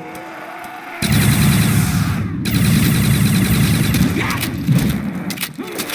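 A weapon fires with a loud, rapid buzzing blast.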